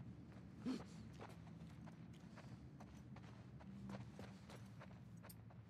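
Footsteps creak softly on wooden floorboards.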